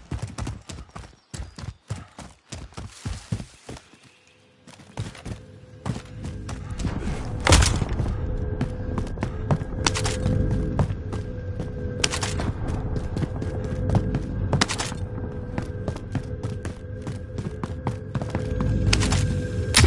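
Footsteps run quickly over ground and wooden floors.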